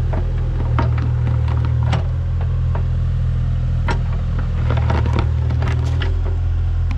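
An excavator engine rumbles steadily nearby.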